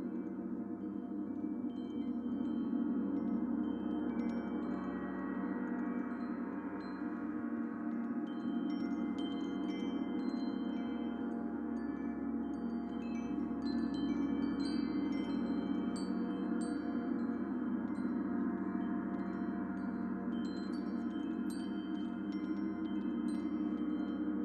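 Singing bowls hum in a steady, layered ringing drone.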